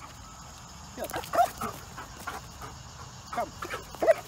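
A dog whines and yelps.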